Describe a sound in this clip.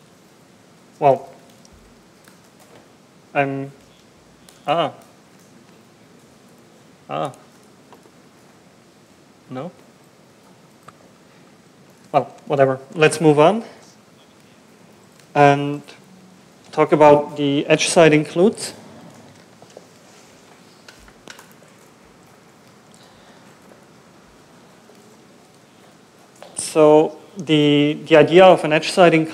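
A man speaks into a microphone in short bursts with pauses, as if presenting.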